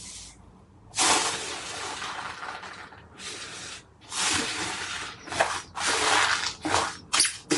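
Foam beads crunch and rustle as a hand presses into slime.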